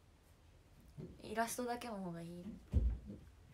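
A young woman speaks softly, close to the microphone.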